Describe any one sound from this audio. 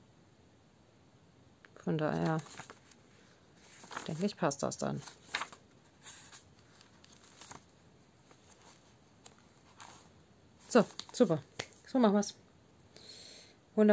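Paper pages turn and rustle.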